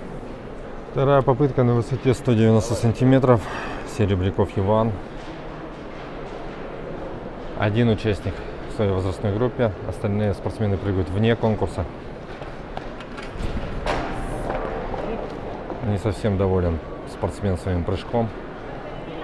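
A man talks close by with animation, in a large echoing hall.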